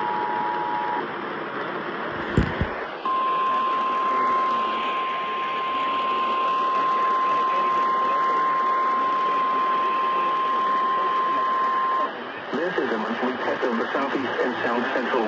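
A radio hisses with loud static.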